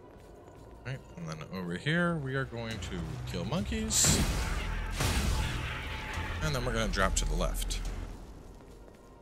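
Monsters snarl and growl.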